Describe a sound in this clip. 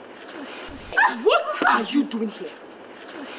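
A young woman laughs loudly and mockingly.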